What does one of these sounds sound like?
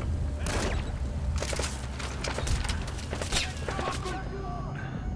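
Muffled rifle shots go off one after another.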